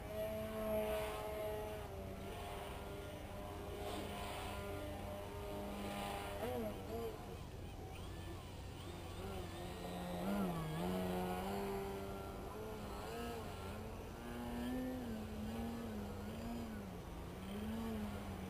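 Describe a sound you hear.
Wind blows over the microphone outdoors.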